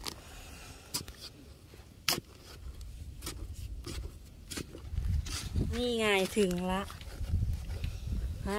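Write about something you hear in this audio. A metal spade scrapes and thuds into soil.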